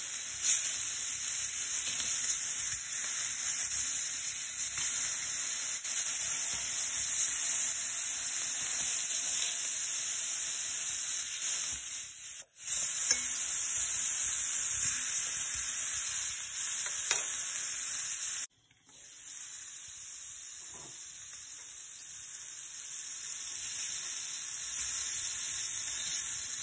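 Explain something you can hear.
Meat sizzles and crackles in a hot pan.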